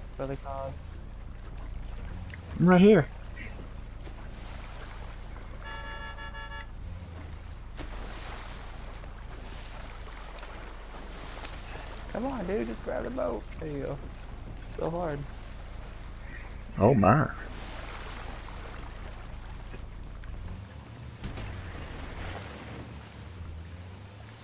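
Water splashes and churns behind a boat.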